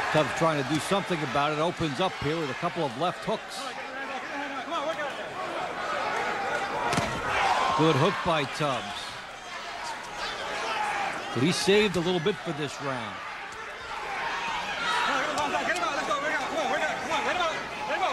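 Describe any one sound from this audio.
Boxing gloves thud against bodies in quick blows.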